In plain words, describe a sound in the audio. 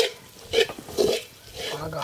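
A metal spatula scrapes and stirs food in a pan.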